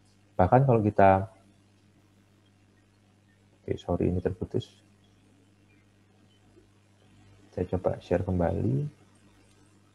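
A man speaks calmly in short bursts over an online call.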